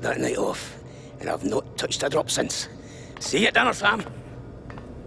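An elderly man speaks wearily, close by.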